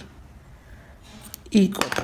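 Scissors snip through yarn.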